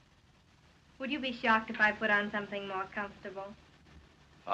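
A young woman speaks playfully, close by.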